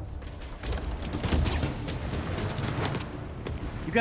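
Heavy metal doors swing open with a low rumble.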